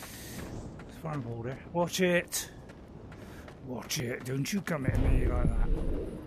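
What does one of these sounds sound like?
A jet of flame roars out in a burst.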